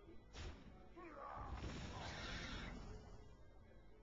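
A card game's attack lands with a burst of magical sound effects.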